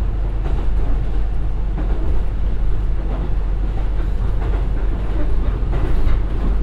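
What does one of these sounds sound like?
A diesel train rumbles steadily along the rails, heard from inside.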